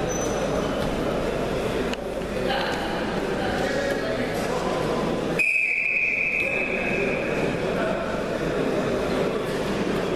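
Wrestlers thud and scuffle on a mat.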